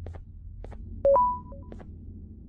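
A button beeps once.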